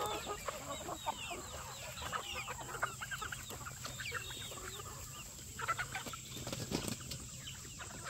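Many chickens cluck and chirp nearby.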